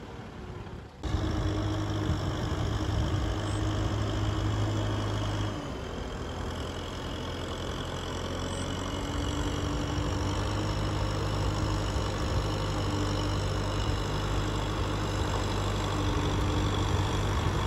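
A tractor engine drones loudly close by.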